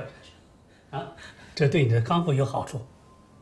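A man speaks gently.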